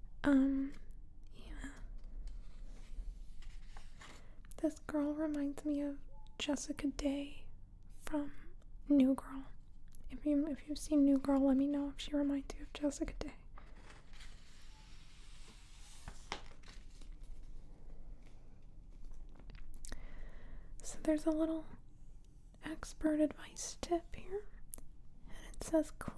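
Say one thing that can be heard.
Fingers tap and brush softly against glossy paper.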